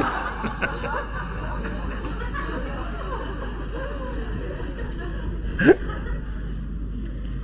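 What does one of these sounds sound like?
A middle-aged man laughs heartily close to a microphone.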